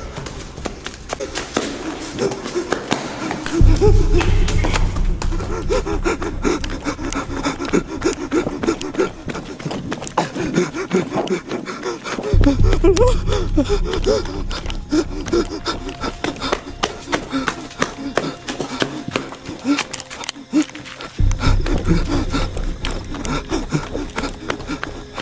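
Footsteps crunch on rough ground close by.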